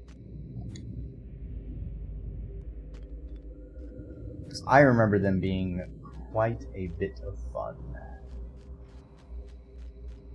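A video game plays soft, sparse sound effects.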